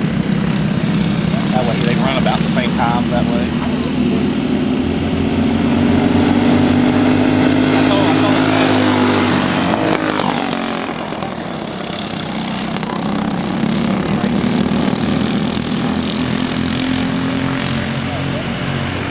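Small kart engines buzz and whine as karts race around a track.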